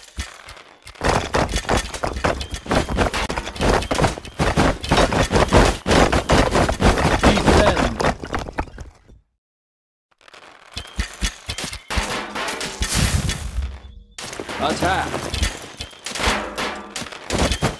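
Weapons clash and strike rapidly in a busy battle.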